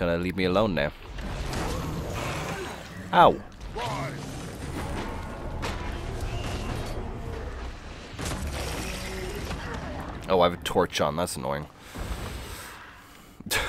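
Blades swing and magic blasts crash in a fight with a monster.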